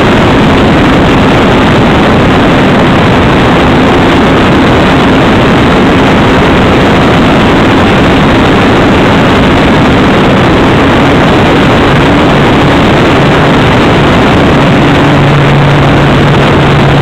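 A small propeller motor hums steadily at close range.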